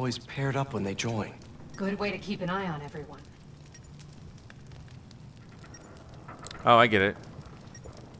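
A fire crackles in a barrel.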